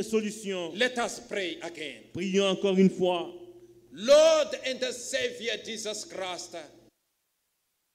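A man speaks loudly and with feeling into a microphone in an echoing hall.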